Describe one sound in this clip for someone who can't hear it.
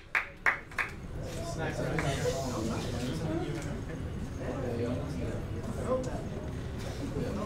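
A crowd of young people chatters nearby.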